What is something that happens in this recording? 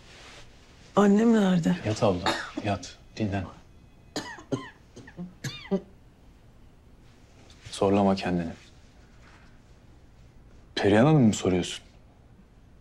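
A young woman speaks softly and wearily nearby.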